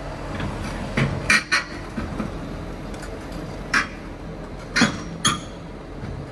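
Metal clangs sharply as a heavy machine shifts on a steel trailer deck.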